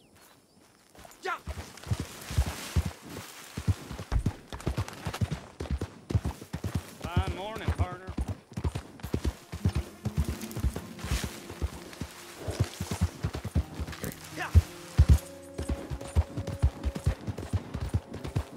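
A horse's hooves pound quickly on dry ground at a gallop.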